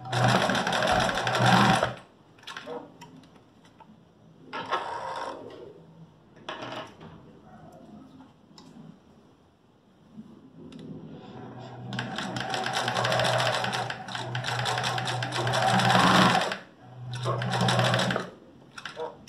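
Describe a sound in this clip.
A sewing machine whirs in fast, steady bursts.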